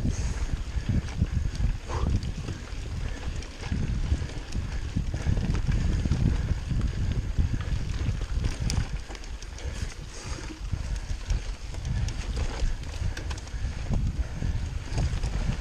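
Wind rumbles loudly against a microphone while riding.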